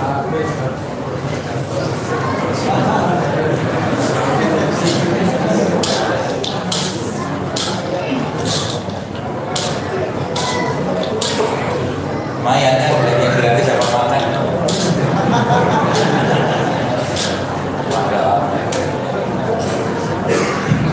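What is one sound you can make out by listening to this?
A man talks steadily through a microphone.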